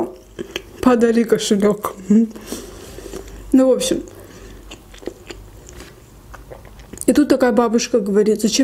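A young woman talks softly and closely into a microphone.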